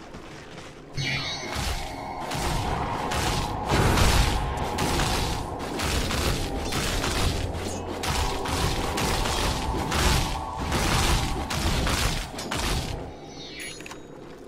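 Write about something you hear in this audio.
Magical blasts and zaps burst repeatedly in a fight.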